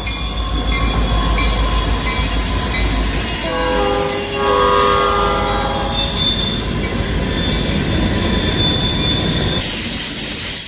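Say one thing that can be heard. Diesel locomotives rumble loudly close by.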